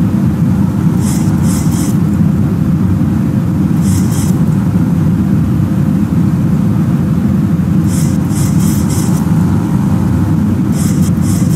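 Rain patters against the windshield.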